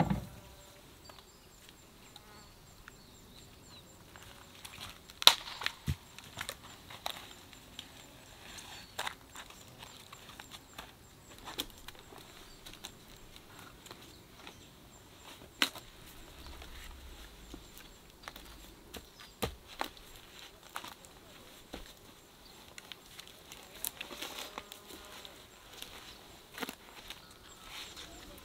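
A person climbs a tree, shoes scuffing on bark.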